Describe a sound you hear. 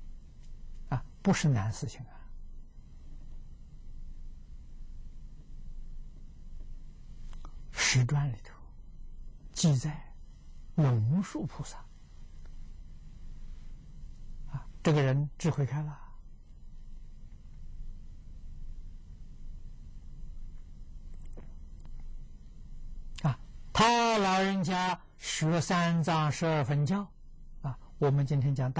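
An elderly man speaks calmly and slowly, close by, with long pauses.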